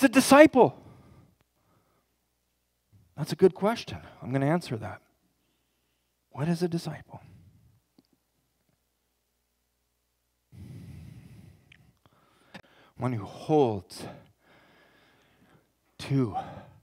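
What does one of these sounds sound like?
A man speaks calmly through a microphone in a large room, pausing between phrases.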